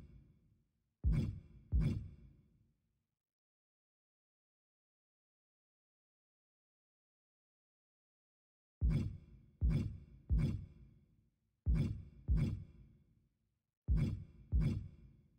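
A short thudding whoosh sounds each time a menu choice changes.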